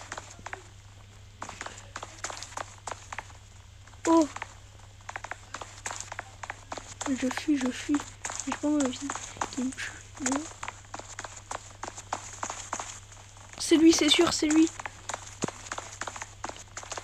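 Footsteps patter quickly on sand.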